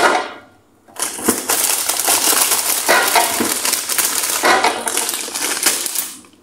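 Plastic packaging rustles and crinkles loudly close by.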